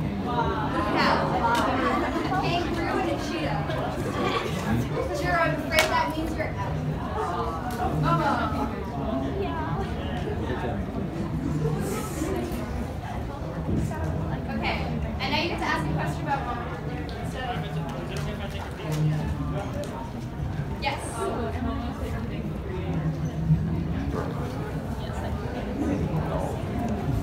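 Voices of a crowd murmur and chatter nearby.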